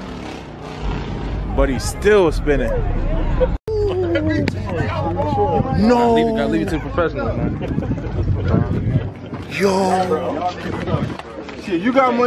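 Young men talk and shout with animation nearby outdoors.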